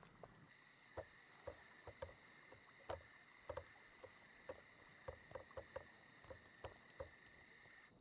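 Bare feet thump quickly across wooden planks.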